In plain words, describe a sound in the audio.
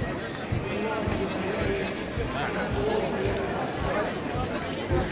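A large crowd murmurs and talks outdoors.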